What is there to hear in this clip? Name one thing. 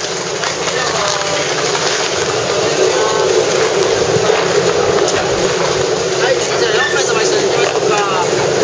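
A crowd of people chatter nearby, outdoors.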